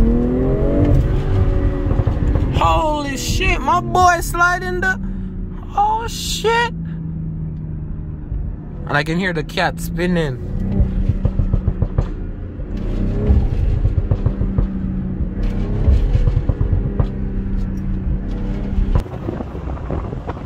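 A car engine roars and revs up and down while driving.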